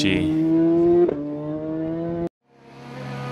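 A motorcycle engine roars past at high speed.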